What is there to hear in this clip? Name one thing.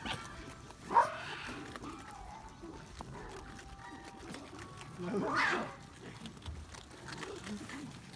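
Foxes crunch dry food close by.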